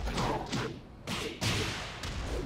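A fire burst whooshes loudly.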